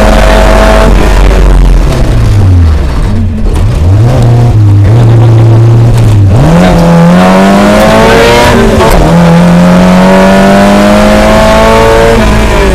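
A car engine revs loudly from inside the car, rising and falling.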